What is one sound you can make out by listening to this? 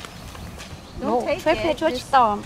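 A young girl speaks excitedly nearby.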